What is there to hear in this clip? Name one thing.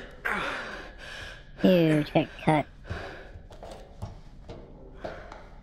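Knees and hands scrape softly across a hard floor.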